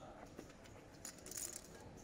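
Poker chips click softly.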